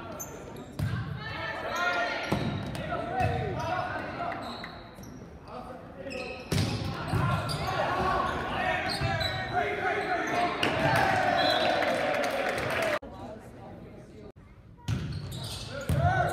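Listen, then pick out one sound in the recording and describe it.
A crowd of young spectators cheers and shouts in a large echoing gym.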